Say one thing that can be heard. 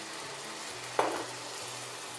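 A wooden spoon knocks against a pot.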